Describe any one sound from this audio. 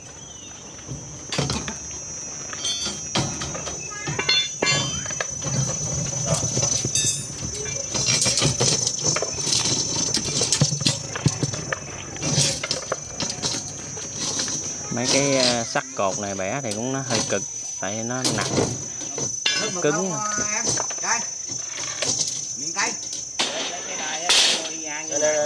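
Steel bars clank and scrape against a metal bending tool.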